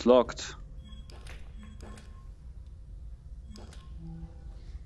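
Short mechanical clicks sound as a pistol is handled.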